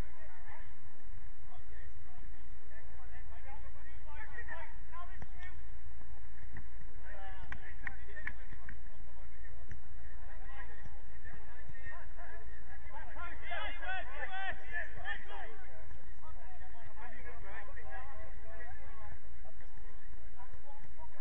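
Players shout and call to each other across the field, far off.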